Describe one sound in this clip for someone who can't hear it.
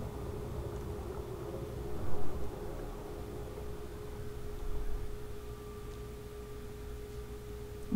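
Water rumbles low and murky around a moving submersible.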